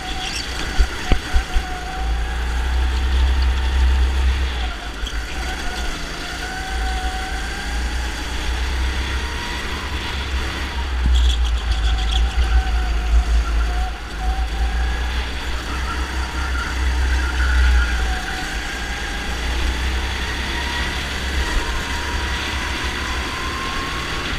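A go-kart engine whines loudly up close, rising and falling in pitch as it speeds up and slows.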